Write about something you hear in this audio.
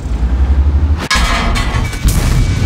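A shell explodes nearby with a loud crash.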